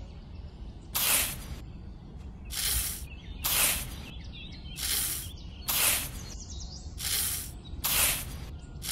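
A small toy shovel scrapes and scoops loose grain in repeated strokes.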